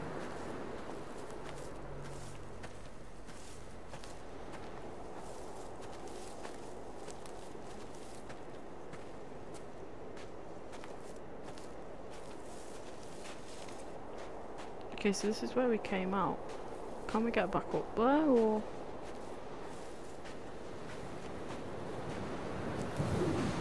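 Wind blows steadily over open ground.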